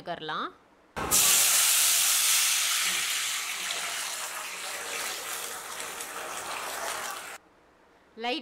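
Liquid sizzles loudly as it is poured into a hot pan.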